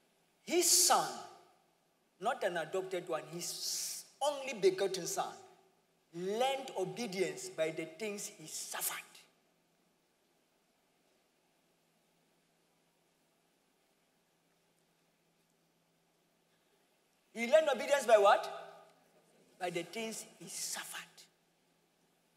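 A young man speaks calmly through a microphone in a large echoing hall, with pauses.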